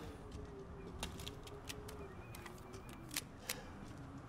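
A pistol clicks and clacks as it is reloaded.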